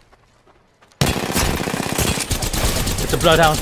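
Rapid gunfire rattles loudly at close range.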